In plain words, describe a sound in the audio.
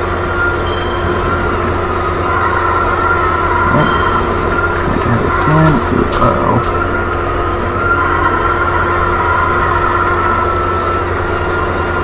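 A kart's speed boost roars.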